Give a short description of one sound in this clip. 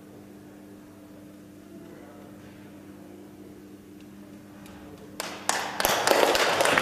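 A piano chord rings out softly and fades.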